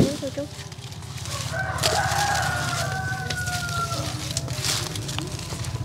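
Leaves rustle close by.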